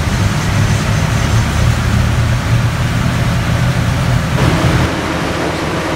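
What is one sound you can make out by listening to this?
A car engine idles with a loud, steady rumble.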